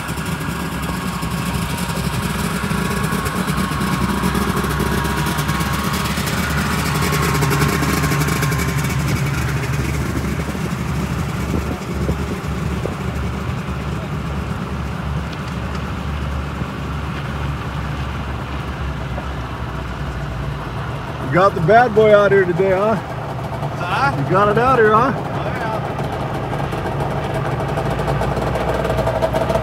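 A vehicle engine rumbles low and steady while driving slowly.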